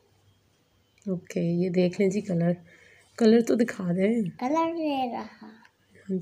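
A child speaks with animation close by.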